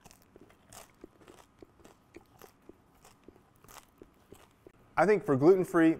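A man chews crusty bread with faint crunches.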